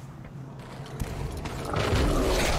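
A creature lets out a loud, harsh shriek.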